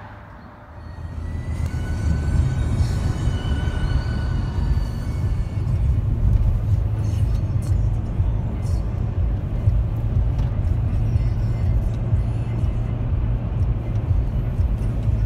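A car drives along a road with a steady low rumble of tyres and engine.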